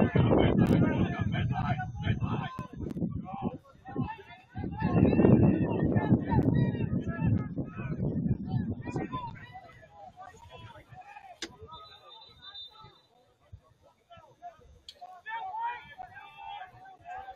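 Young players shout to each other across an open outdoor field at a distance.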